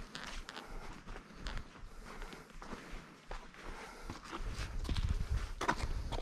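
Footsteps crunch on a dirt and rock trail.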